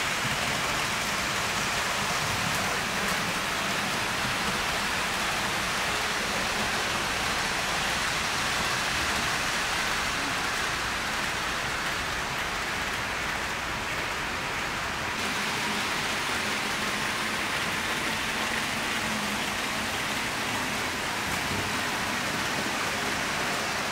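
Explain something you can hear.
Small model trains rumble and clatter softly along their tracks.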